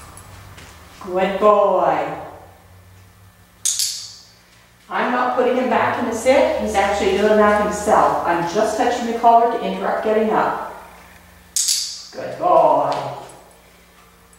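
A woman talks calmly to a dog nearby.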